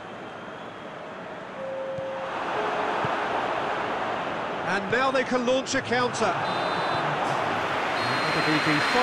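A large stadium crowd roars steadily, growing louder.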